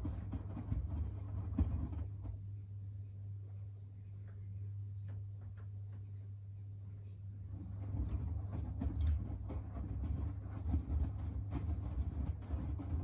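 Wet laundry thumps and tumbles inside a washing machine drum.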